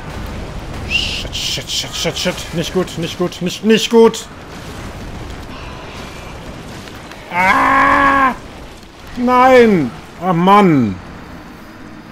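A man exclaims loudly and groans close to a microphone.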